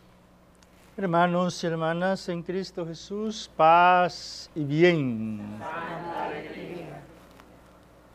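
An elderly man chants through a microphone in an echoing hall.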